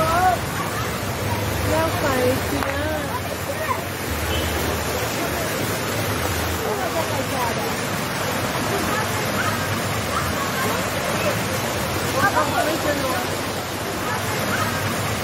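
Children and adults chatter lively in the background.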